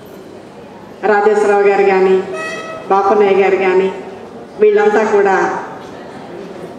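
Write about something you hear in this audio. A middle-aged woman speaks with animation into a microphone over loudspeakers.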